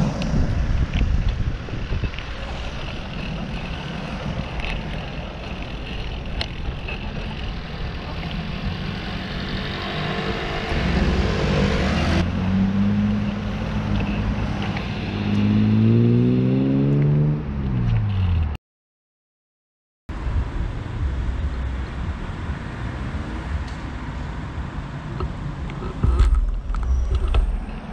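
Wind buffets the microphone with a low, steady rumble.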